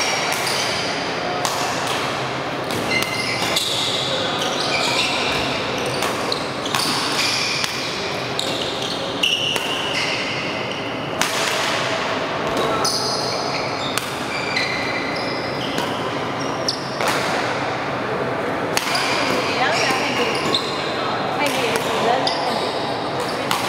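A racket smacks a shuttlecock back and forth in a large echoing hall.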